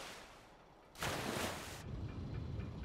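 Steam hisses in a sudden burst.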